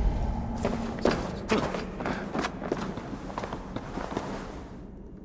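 A figure climbs a wooden wall with soft thuds and creaks.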